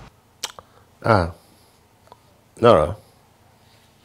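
An older man speaks on a phone in short, deep phrases.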